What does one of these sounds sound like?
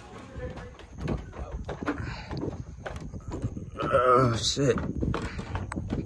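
Footsteps thud on wooden stairs outdoors.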